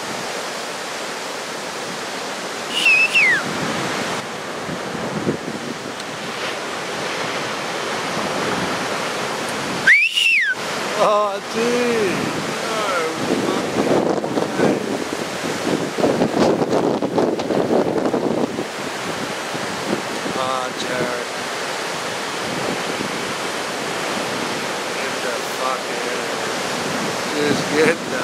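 Waves crash and roar steadily out at sea.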